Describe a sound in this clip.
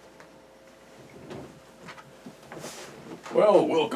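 An office chair creaks as a man sits down.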